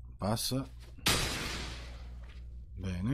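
A short magical whoosh sounds.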